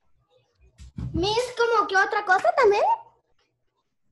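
A young child talks with animation through an online call.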